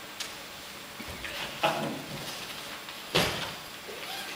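Footsteps thump on a wooden stage as a man hurries across.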